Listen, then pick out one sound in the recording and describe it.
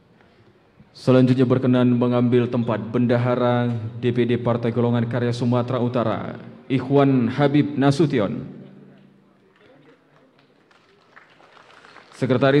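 A middle-aged man speaks formally into a microphone, heard through loudspeakers in a large echoing hall.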